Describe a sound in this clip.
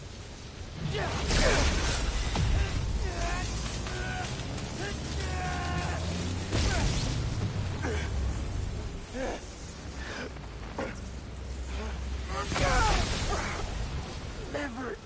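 Electricity crackles and bursts with loud booming blasts.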